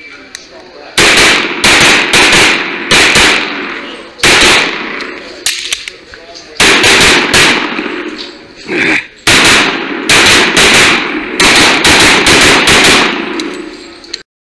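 A handgun fires rapid shots that ring loudly through an echoing indoor range.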